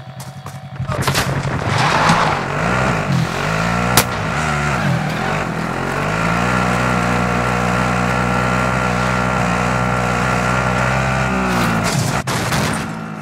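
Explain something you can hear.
A quad bike engine drones steadily, revving up and then settling.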